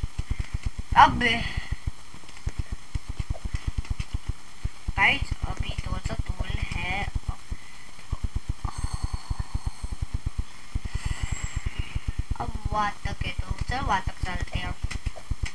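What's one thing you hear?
A young boy speaks with animation close to a microphone.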